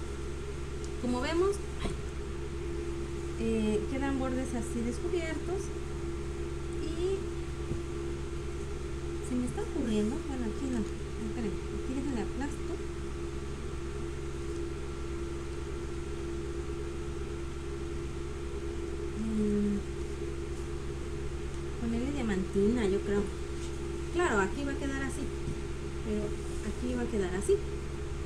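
A woman speaks casually, heard over an online call.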